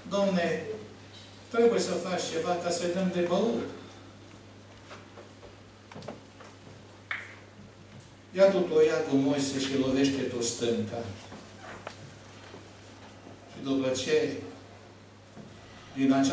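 An elderly man speaks with emphasis through a microphone, pausing between phrases.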